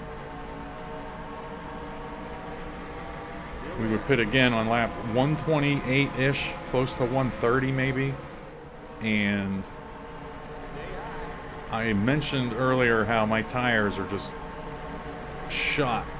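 Other race car engines roar close by.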